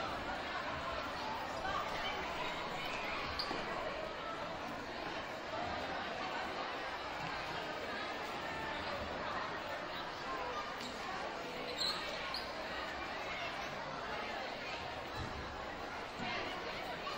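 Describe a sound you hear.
A large crowd of adults and children chatters loudly in a big echoing hall.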